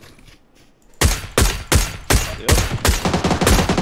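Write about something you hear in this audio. A rifle fires rapid shots in quick bursts.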